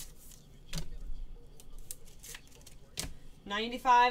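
Trading cards rustle and tap as gloved hands handle them.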